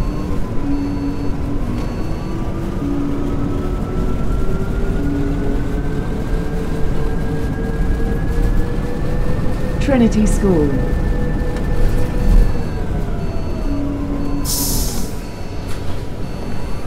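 A bus engine whines steadily, rising in pitch as it speeds up and falling as it slows.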